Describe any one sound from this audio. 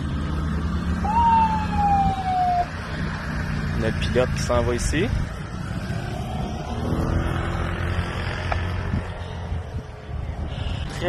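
A van's engine rumbles as the van drives away.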